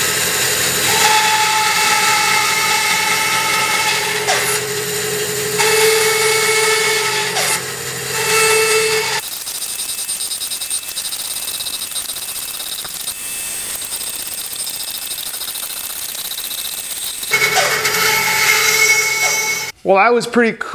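A band saw whines as it cuts through wood.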